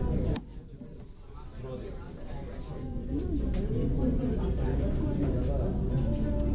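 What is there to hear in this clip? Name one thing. A young woman chews food with her mouth full.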